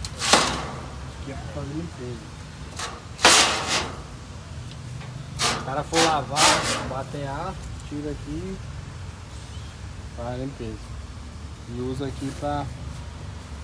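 A man talks close by in a calm voice.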